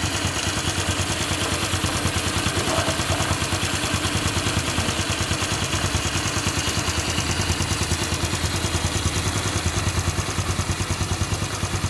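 A small motorcycle engine idles close by with a fast, steady chugging rattle.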